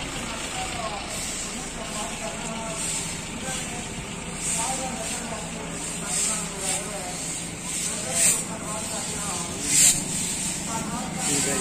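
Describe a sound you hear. Brooms scrape and swish across a paved road.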